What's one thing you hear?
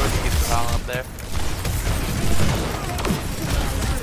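Explosions burst loudly in a game.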